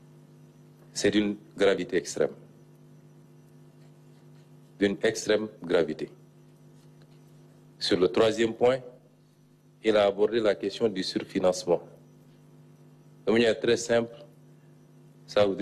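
A man speaks slowly and formally into a microphone, in short phrases with pauses.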